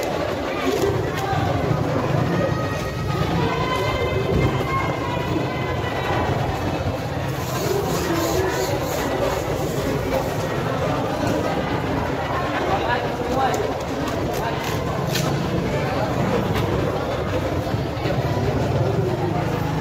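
A knife slices through raw fish with wet, soft cutting sounds.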